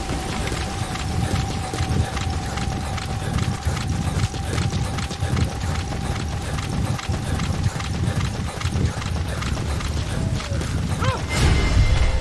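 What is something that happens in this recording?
Footsteps run over dirt and grass.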